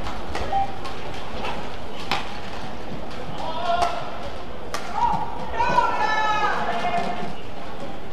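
A racket strikes a shuttlecock with sharp smacks.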